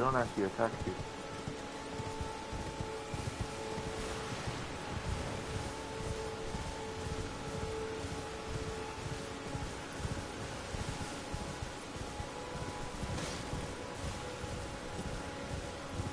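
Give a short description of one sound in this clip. Horse hooves gallop steadily over soft ground.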